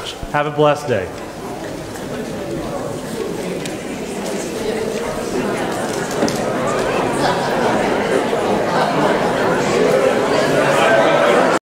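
A crowd of people chatters and murmurs, growing louder.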